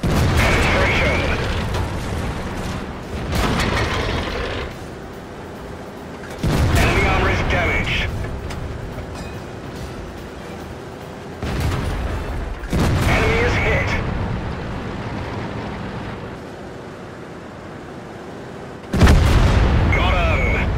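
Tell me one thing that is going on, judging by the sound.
A tank cannon fires with a loud boom that rumbles and fades.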